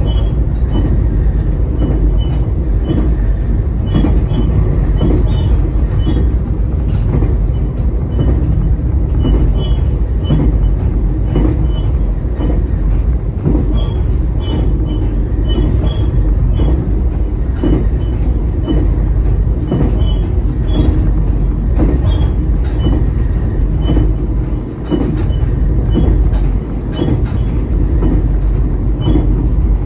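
A train engine rumbles steadily from inside the cab.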